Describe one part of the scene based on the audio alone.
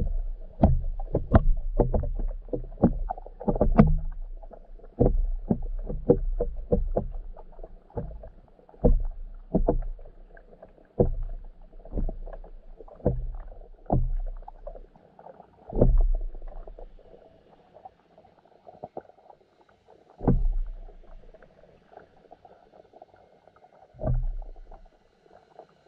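Fish bump and peck at a nearby hard surface underwater with dull, muffled knocks.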